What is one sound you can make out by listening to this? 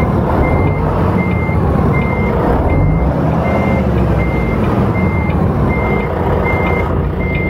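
A reversing alarm beeps at an even pace.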